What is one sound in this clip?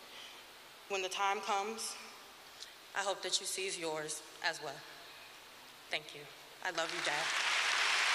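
A young woman speaks softly into a microphone in a large echoing hall.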